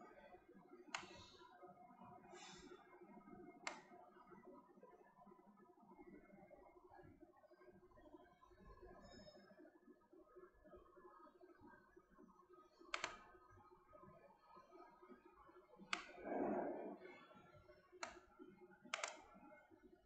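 A computer mouse clicks sharply several times.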